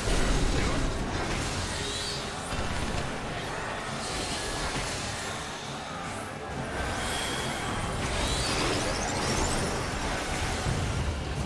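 Loud fantasy battle effects whoosh, crackle and boom.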